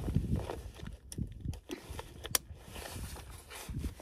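A belt buckle clicks and rattles.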